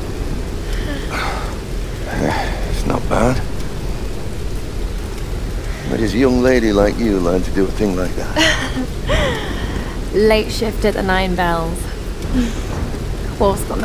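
A young woman speaks quietly and close by.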